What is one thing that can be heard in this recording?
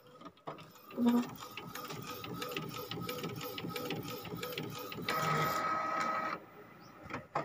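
A printer whirs and clicks as it feeds a card through.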